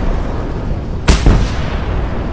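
A heavy gun fires a single loud shot.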